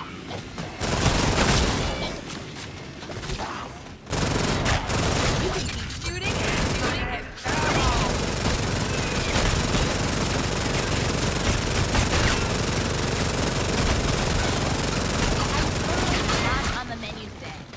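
Rapid gunfire bursts out loudly and repeatedly.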